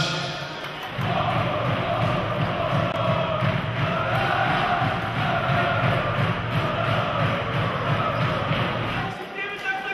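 A crowd of fans chants loudly in a large echoing hall.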